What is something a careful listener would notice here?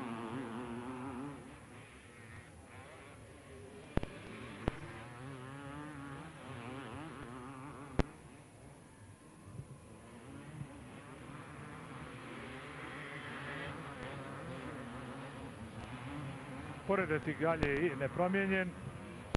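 A motorcycle engine revs and whines as a dirt bike races by.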